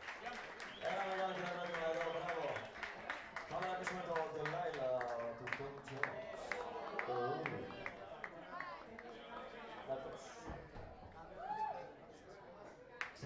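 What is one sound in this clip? A crowd talks and cheers loudly nearby.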